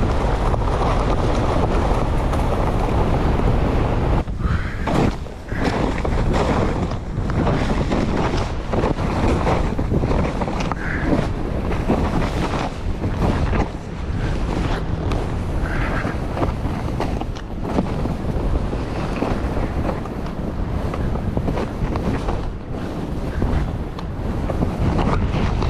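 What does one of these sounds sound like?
Skis hiss and scrape through snow.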